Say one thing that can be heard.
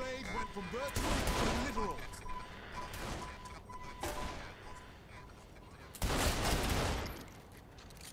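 A gun fires several loud shots.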